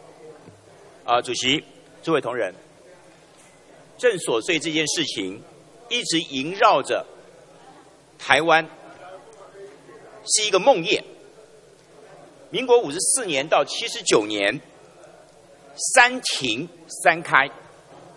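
A man speaks calmly and formally into a microphone in a large hall.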